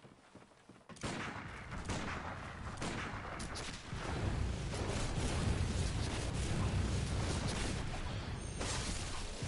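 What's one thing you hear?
Weapons slash and strike loudly in a fight.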